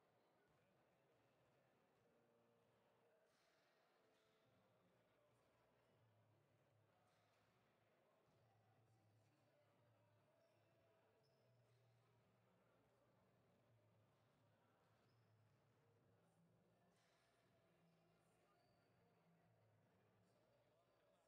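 Basketball players' shoes squeak on a court in a large echoing hall.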